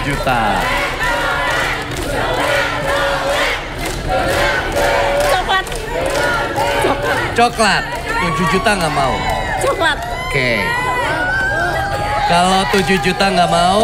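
A crowd claps its hands.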